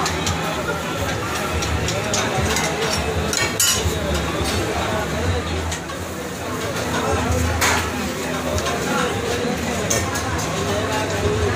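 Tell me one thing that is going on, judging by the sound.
Many people chatter in the background of a busy, noisy crowd.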